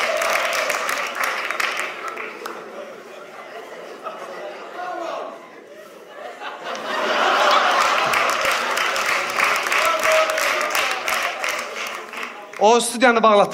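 An audience laughs loudly in a large hall.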